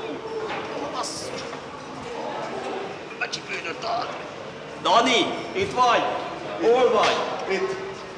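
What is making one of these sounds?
An older man talks in reply.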